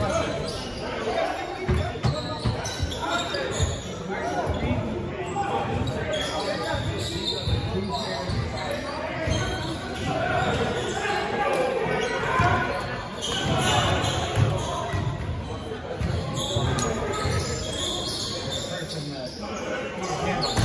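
Men shout and call out to each other during a game.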